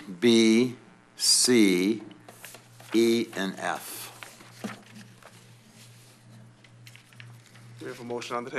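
A middle-aged man speaks into a microphone, drawing out his words in a rising and falling voice.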